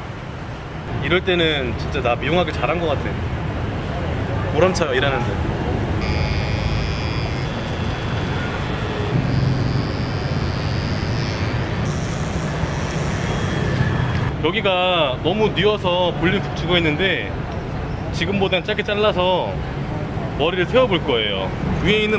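A young man talks calmly close by.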